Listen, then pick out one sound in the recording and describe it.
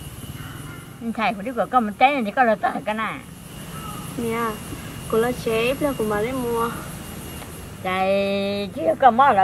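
An elderly woman talks nearby with animation.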